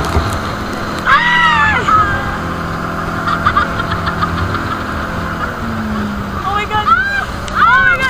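Women scream and shout in alarm.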